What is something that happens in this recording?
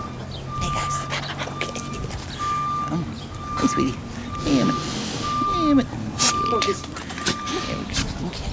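A dog barks close by.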